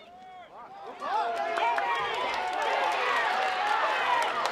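A crowd cheers and yells loudly outdoors.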